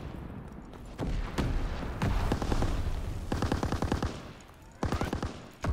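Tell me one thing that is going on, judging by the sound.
A submachine gun fires quick bursts.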